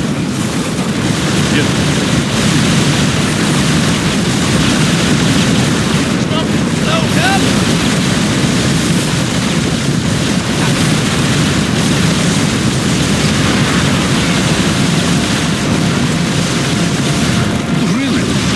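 Gunfire and explosions rattle and boom continuously in a battle.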